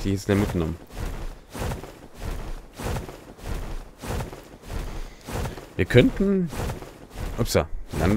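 Large wings beat with rhythmic heavy whooshes.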